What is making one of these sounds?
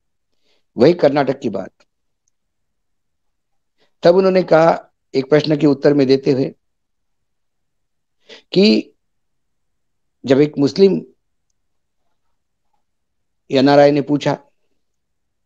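A middle-aged man speaks calmly in short phrases, close to a microphone, with pauses between them.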